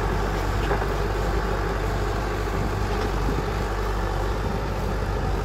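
A tiller churns through soil and grass.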